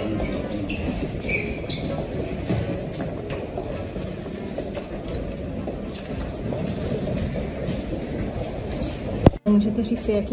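A crowd shuffles and murmurs along an echoing corridor.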